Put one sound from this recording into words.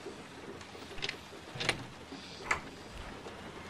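A door handle clicks and rattles.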